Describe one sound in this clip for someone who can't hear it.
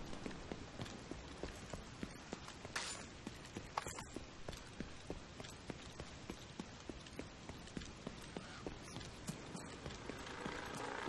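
Footsteps thud steadily at a walking pace.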